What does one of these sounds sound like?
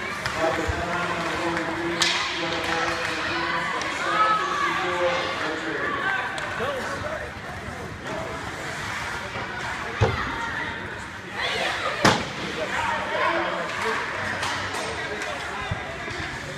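Skates scrape and hiss across the ice in a large echoing rink.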